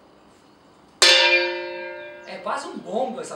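A metal gong is struck once and rings out.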